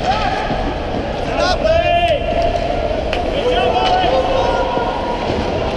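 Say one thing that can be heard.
Young players shout to each other in a large echoing rink.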